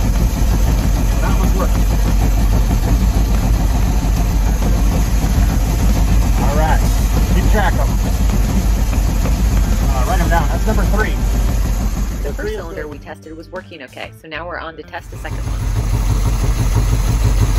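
A boat engine idles with a steady, loud rumble.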